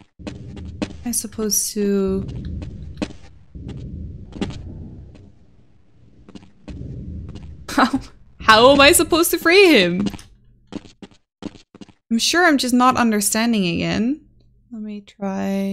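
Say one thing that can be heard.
A young woman talks with animation through a close microphone.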